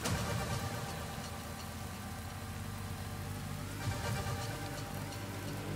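Tyres rumble and crunch over rough ground.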